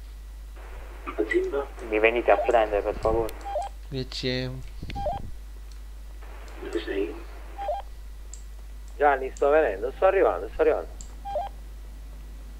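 A young man talks with animation into a close microphone.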